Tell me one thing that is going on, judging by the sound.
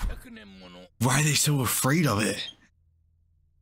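A young man exclaims loudly and with excitement, close to a microphone.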